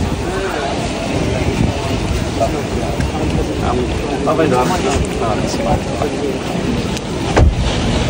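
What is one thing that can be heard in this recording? A man speaks nearby.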